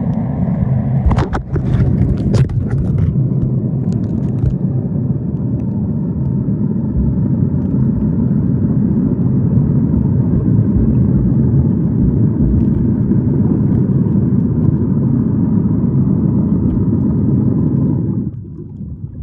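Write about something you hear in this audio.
Water rushes and rumbles steadily, heard from underwater.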